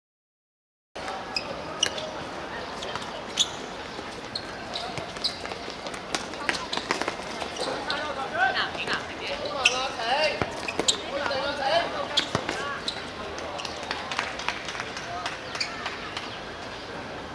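A ball is kicked with sharp thuds on a hard court.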